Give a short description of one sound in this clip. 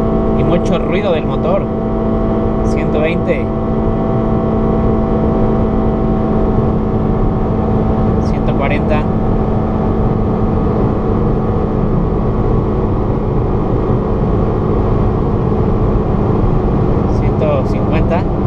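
Tyres roar steadily on a paved road.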